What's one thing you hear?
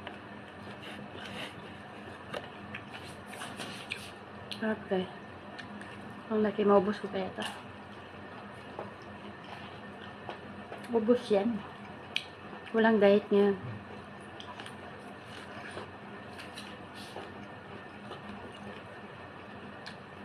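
A woman bites and chews corn with small wet clicks.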